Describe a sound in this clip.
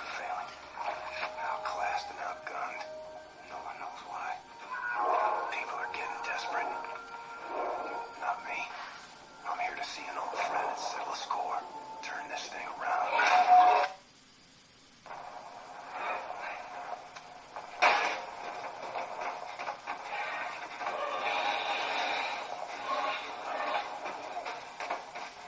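Game music and effects play from small laptop speakers.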